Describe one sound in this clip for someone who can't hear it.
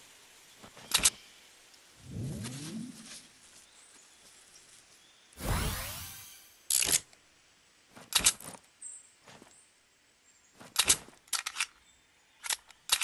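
Sharp gunshots crack now and then.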